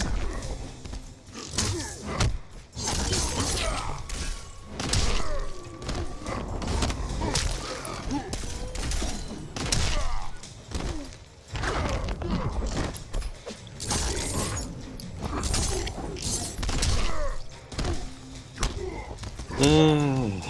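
Heavy punches and kicks thud and smack in quick bursts.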